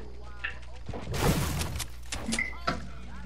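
A pickaxe strikes wood.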